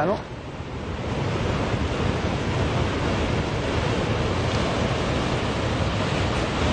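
Water surges and rushes softly.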